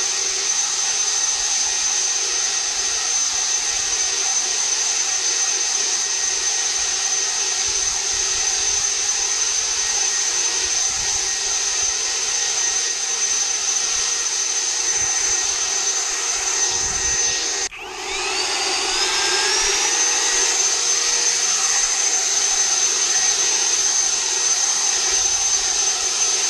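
A leaf blower roars with a steady high whine close by.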